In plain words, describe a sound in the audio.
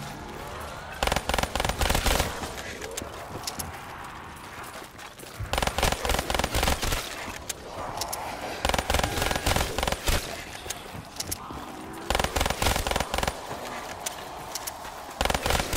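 Rapid gunfire rattles in quick, loud bursts.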